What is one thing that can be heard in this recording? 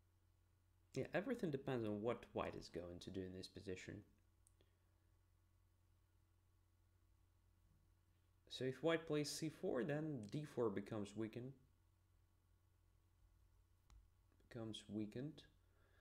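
A man speaks calmly and thoughtfully into a close microphone, pausing between phrases.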